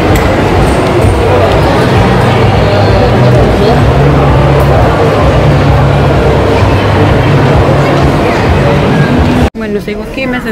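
Shoppers chatter in a large echoing hall.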